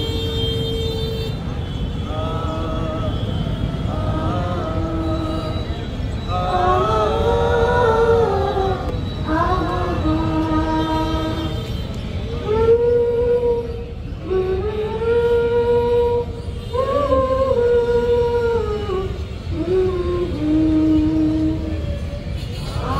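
A young woman sings slowly and mournfully through a microphone and loudspeakers.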